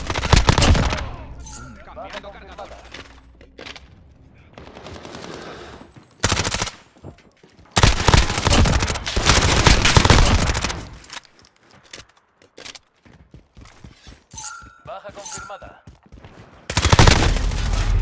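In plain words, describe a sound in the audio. Gunfire bursts out in rapid loud shots.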